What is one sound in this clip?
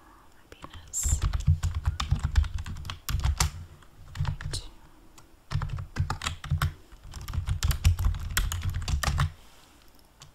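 Keys clatter rapidly on a keyboard.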